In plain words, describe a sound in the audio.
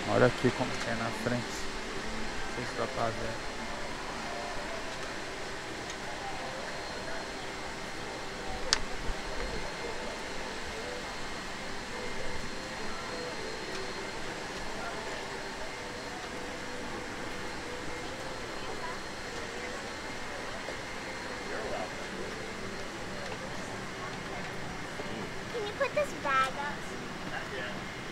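Passengers talk quietly nearby.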